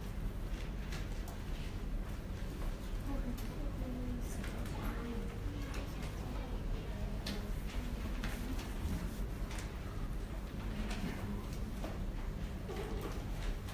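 A woman speaks calmly through a microphone and loudspeakers in a large room.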